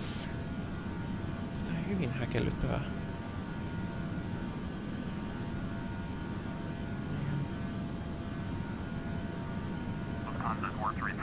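A jet engine hums steadily in the background.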